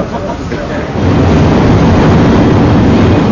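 A train rumbles loudly along the platform.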